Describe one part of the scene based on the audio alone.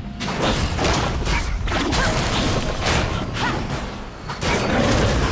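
Magic spell effects whoosh and crackle in bursts.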